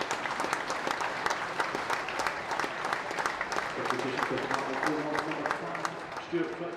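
A stadium crowd claps in a steady rhythm.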